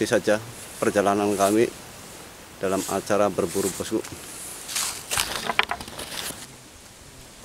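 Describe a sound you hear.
A man talks close by with animation, outdoors.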